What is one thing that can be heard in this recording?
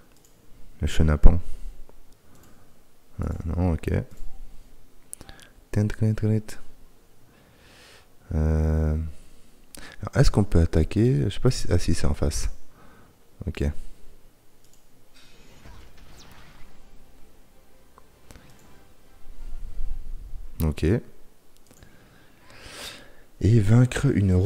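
A man speaks casually and close into a microphone, in short bursts.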